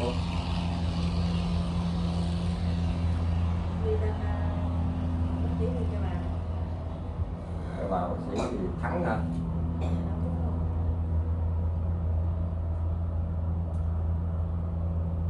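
An electric fan hums steadily.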